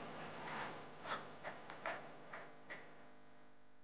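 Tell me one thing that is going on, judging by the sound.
Beads of a hanging curtain clink and rattle.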